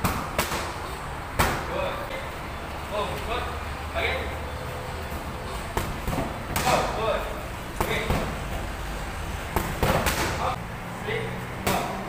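Punches and kicks thud sharply against training pads in an echoing room.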